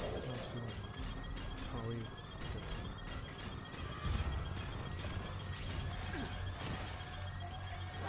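Heavy metal footsteps clank and thud as a walking robot strides along.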